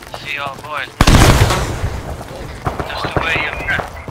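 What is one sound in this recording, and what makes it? A loud explosion booms nearby and rumbles away.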